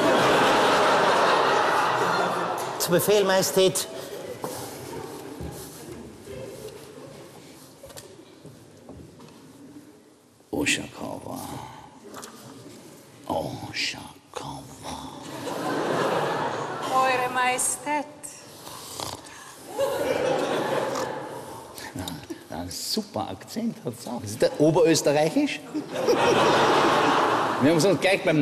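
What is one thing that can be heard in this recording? A man sings loudly in a large echoing hall.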